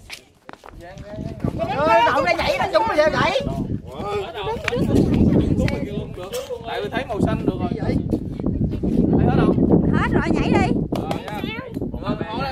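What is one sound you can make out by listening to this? A group of young men and women chatter and laugh together outdoors.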